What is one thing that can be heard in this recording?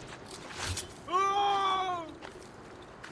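A man cries out in pain.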